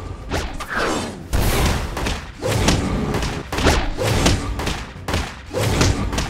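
A beast growls and roars.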